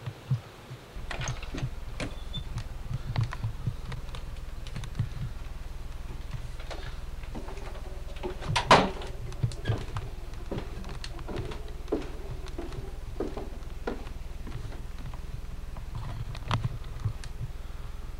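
Footsteps thud down wooden stairs.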